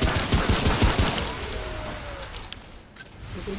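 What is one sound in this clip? A loud burst of impact and roaring noise erupts, then fades.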